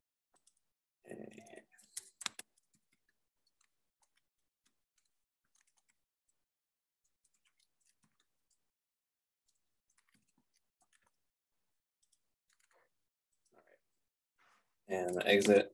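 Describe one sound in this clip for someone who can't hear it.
A man speaks briefly and calmly through a computer microphone.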